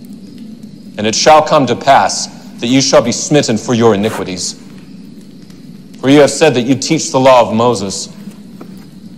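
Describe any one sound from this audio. A man speaks loudly and forcefully in a large echoing hall.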